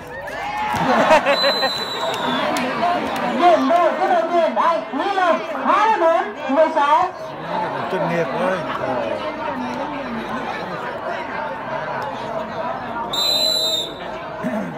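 A large crowd of spectators cheers and chatters loudly outdoors.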